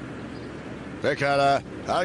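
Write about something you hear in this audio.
An older man speaks.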